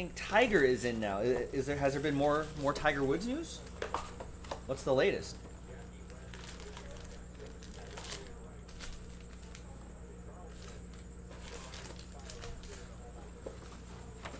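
Cardboard packaging rustles and scrapes as a box is opened.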